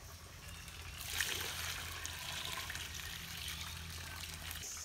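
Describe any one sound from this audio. Water pours from a bucket and splashes onto wet ground.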